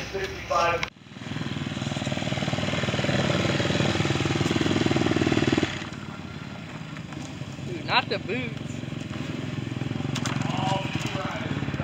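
A dirt bike engine idles with a steady rumble.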